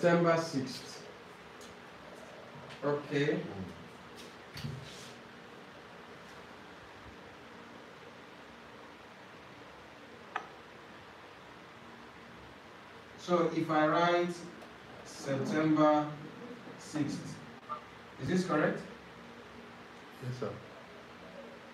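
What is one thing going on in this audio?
A man speaks calmly and clearly, pausing often.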